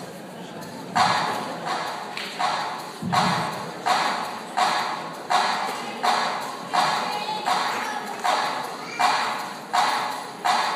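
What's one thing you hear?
A crowd claps in a steady rhythm.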